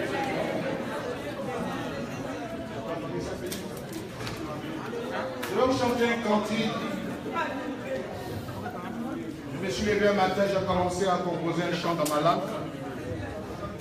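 A crowd of men and women sings together in a room with some echo.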